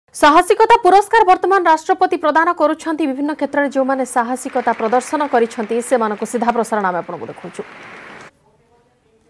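A young woman reads out the news calmly into a microphone.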